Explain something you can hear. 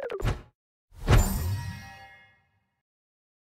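A celebration fanfare with a bright burst marks a completed game level.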